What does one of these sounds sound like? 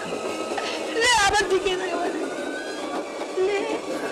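A woman wails and sobs close by.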